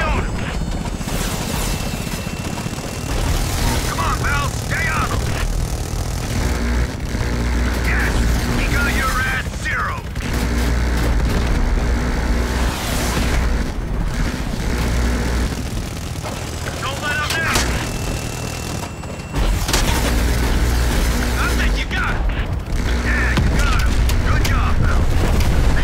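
Helicopter rotors thump steadily and loudly.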